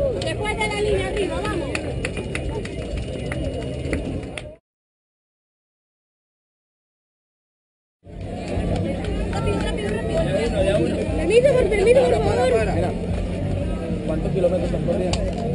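A crowd of spectators cheers and chatters outdoors.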